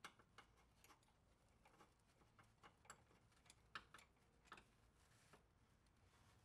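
Metal tools click and clink against a car's underside.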